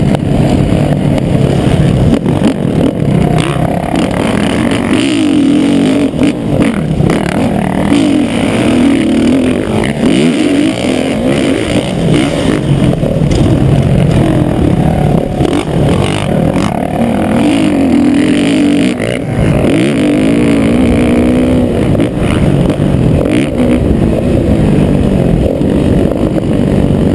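A dirt bike engine revs loudly close by, rising and falling in pitch.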